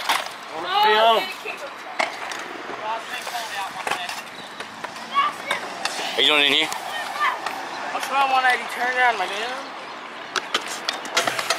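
Scooter wheels roll and rattle over concrete.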